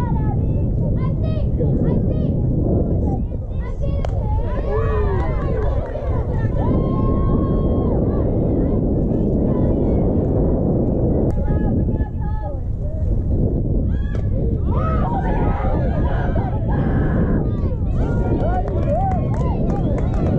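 Young girls shout and cheer at a distance.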